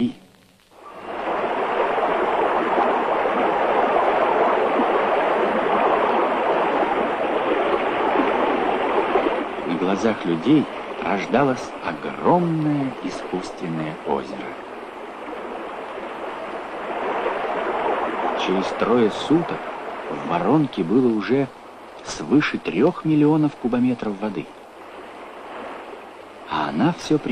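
Water roars and churns as a torrent rushes down a rocky slope.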